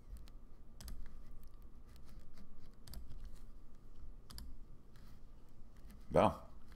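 A man talks calmly and close up into a microphone.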